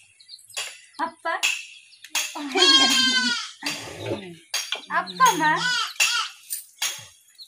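A young man talks playfully to a baby close by.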